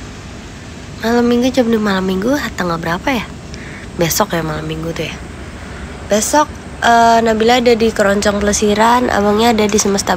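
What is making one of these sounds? A young woman talks close up with animation.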